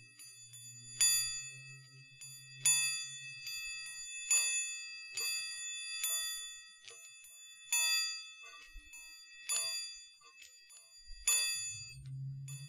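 Small metal objects clink and ring out softly close to a microphone.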